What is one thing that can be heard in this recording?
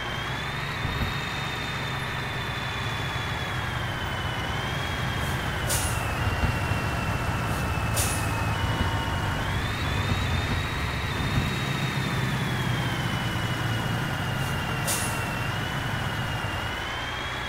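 A truck engine hums steadily and rises and falls in pitch as the truck speeds up and slows down.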